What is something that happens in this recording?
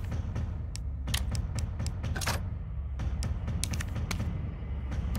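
Short electronic menu clicks sound in quick succession.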